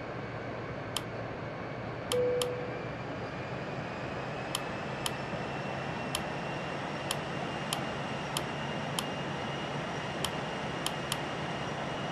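Short soft clicks sound every second or so.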